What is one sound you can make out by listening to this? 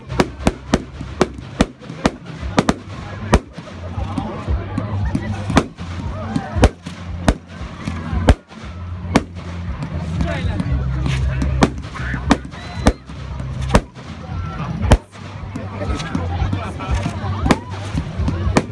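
Fireworks burst with loud sharp bangs and crackles.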